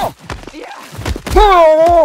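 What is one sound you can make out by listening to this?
Heavy punches thud against a body with wet splatters.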